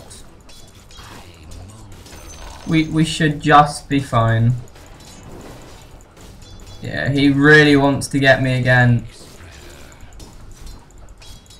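Magic spells crackle and swords clash in a fast fight.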